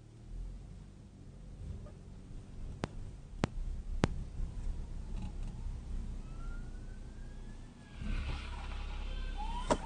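A car engine hums low and steady from inside the car.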